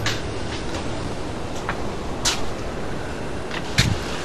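A man's footsteps scuff on pavement close by.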